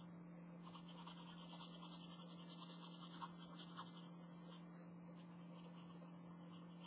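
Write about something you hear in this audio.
A marker pen squeaks and scratches on paper.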